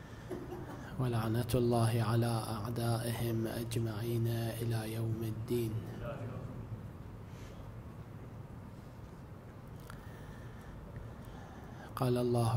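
A man chants in a long, melodic voice through a microphone in an echoing hall.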